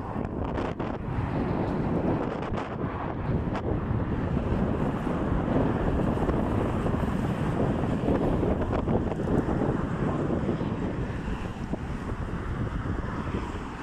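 City traffic hums in the distance.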